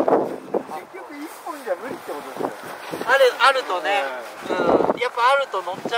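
A second young man talks and laughs nearby.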